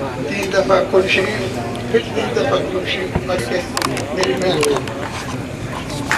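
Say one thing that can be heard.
A man speaks through a microphone over a loudspeaker.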